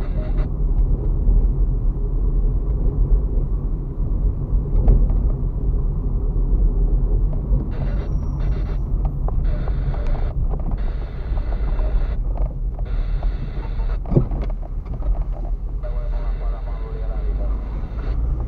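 Tyres crunch and rumble over a rough dirt road.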